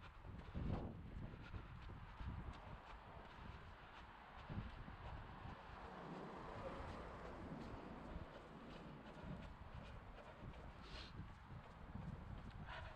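Footsteps tap on a paved path outdoors.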